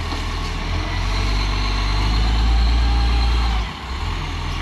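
A garbage truck's engine revs up as it pulls away.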